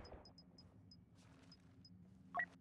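Soft menu clicks tick.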